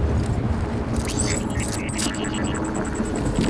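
A small mechanical arm clicks and whirs rapidly.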